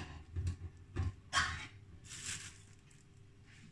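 A pull-tab lid is peeled off a metal can.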